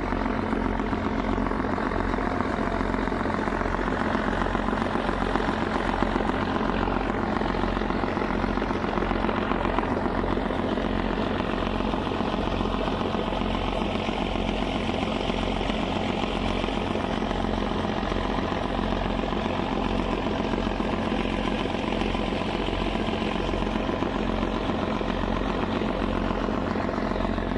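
Water churns and rushes in a boat's wake.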